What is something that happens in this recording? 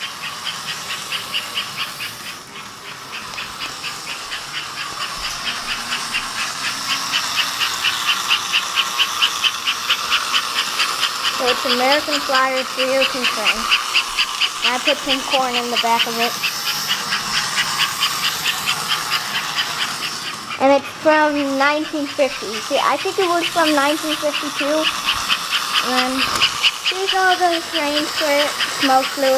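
A toy train clatters steadily along its track with a fast, even clicking.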